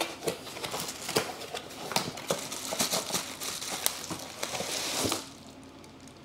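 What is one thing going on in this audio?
Bubble wrap crinkles and rustles in handling.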